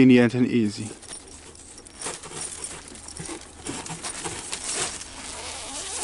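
A zipper slides along a mesh cover.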